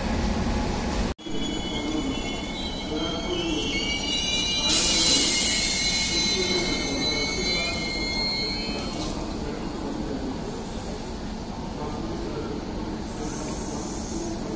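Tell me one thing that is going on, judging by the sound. A passenger train rumbles steadily past on the tracks.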